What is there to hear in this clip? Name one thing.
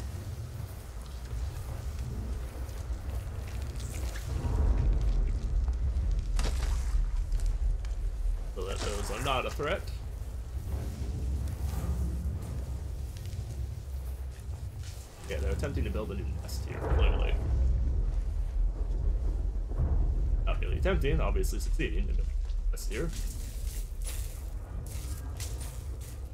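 A low rumbling hum drones throughout, in a large, echoing space.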